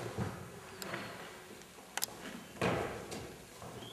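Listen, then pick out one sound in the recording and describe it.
A wooden piano bench scrapes and knocks on the floor.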